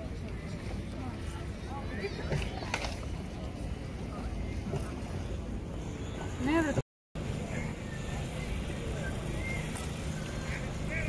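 Small waves lap and slosh against a shoreline.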